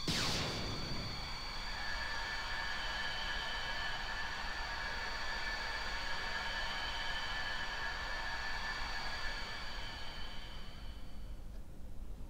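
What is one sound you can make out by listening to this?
A magical beam rings with a bright, shimmering chime that slowly fades.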